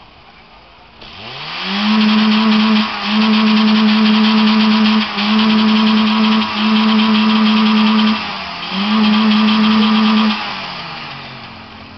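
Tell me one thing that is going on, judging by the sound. A car stereo blasts a loud, deep, steady bass tone in short bursts.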